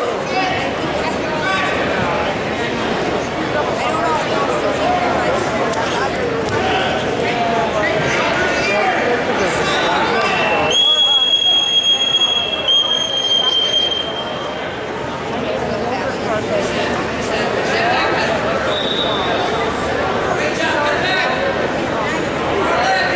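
A crowd of people chatters and calls out in a large echoing hall.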